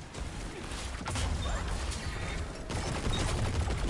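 A game weapon fires in rapid bursts.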